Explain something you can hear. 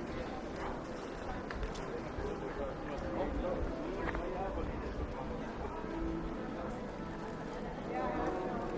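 Footsteps patter on pavement outdoors.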